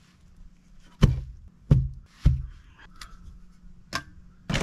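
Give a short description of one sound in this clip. Concrete blocks thud as they are set down on soil.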